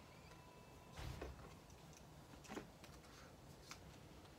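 Banknotes crinkle and rustle in a hand.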